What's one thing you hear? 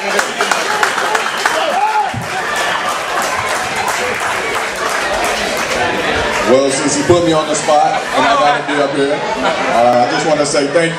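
A crowd chatters and cheers in a noisy room.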